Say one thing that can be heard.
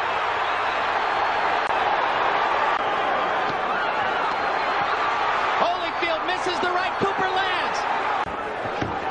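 Boxing gloves thud against bodies.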